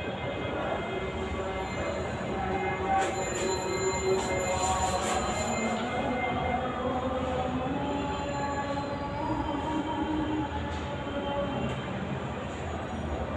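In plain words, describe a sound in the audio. Sound plays from a television loudspeaker across the room.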